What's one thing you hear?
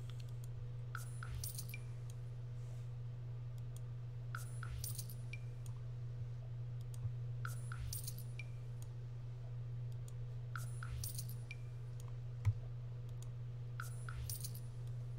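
A short cash-register chime rings again and again at an even pace.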